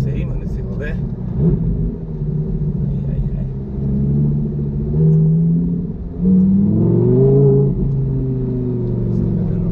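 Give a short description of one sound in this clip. A car engine roars loudly and revs up and down.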